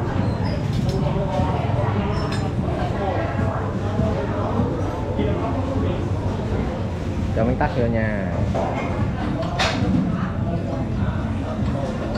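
A spoon clinks against a small ceramic bowl.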